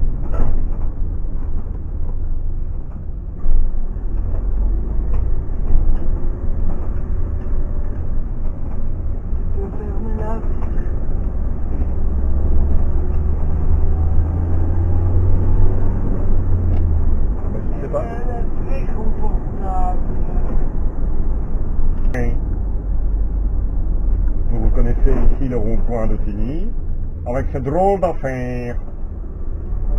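A vehicle engine hums steadily from inside the cab, rising and falling in pitch as it speeds up.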